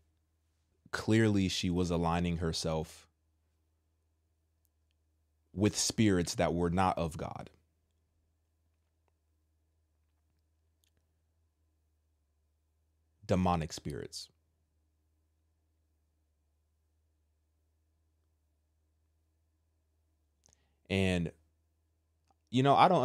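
A man speaks calmly and closely into a microphone, in short bursts with long pauses.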